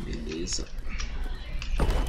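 A campfire crackles.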